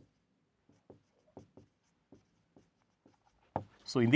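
A marker taps on a whiteboard.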